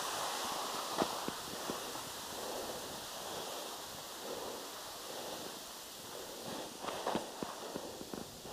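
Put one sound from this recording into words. Ski poles crunch into snow.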